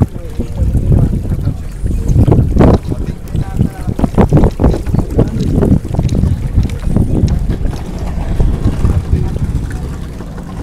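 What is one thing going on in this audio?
A dense school of fish churns and splashes at the water's surface.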